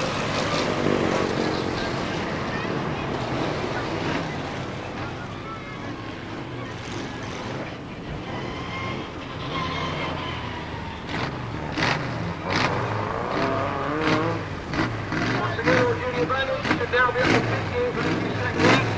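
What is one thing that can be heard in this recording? Car engines roar and rev as cars race around a track.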